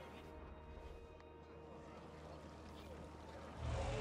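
A soft interface click sounds as a menu opens.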